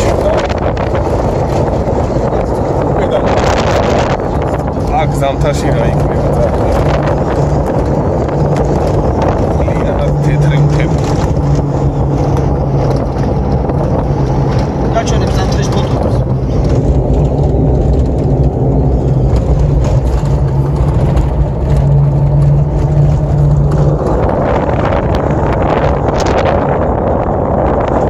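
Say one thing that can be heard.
A car engine hums, heard from inside the car.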